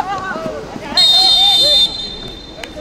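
A referee's whistle blows one sharp blast.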